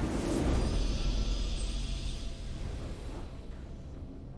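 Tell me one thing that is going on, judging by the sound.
A game's victory fanfare swells and fades out.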